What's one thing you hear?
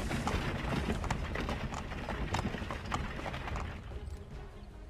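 Horse hooves clop on a dirt path.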